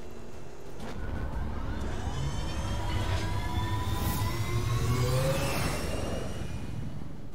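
A dropship's jet engines roar and whine as it lifts off and flies away.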